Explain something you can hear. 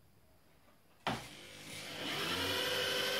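An engine cranks and starts up.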